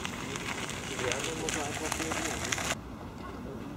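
A bicycle rolls past close by.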